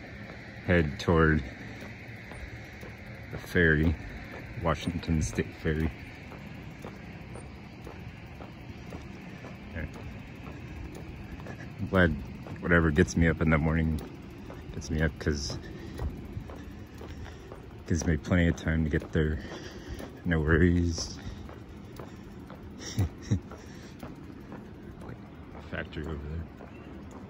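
Footsteps fall on a paved road.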